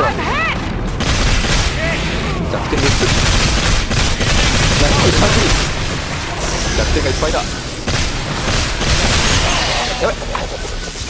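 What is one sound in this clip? A rifle fires in rapid, heavy bursts.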